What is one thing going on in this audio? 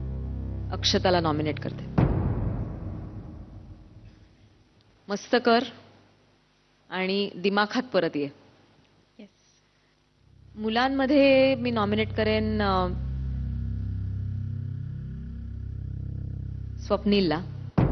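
A woman speaks calmly into a microphone, in short phrases with pauses.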